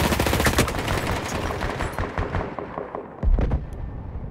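Rapid gunfire rattles and echoes.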